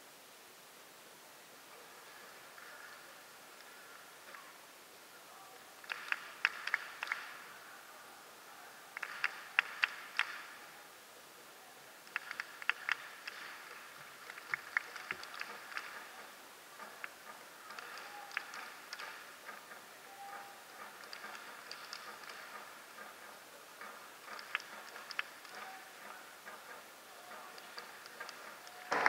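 A large crowd chants and sings in an open stadium.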